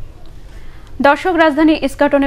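A woman reads out the news calmly and clearly through a microphone.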